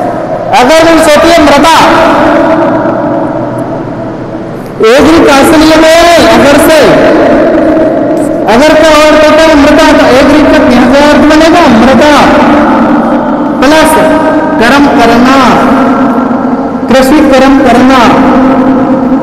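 A man lectures loudly in an echoing room.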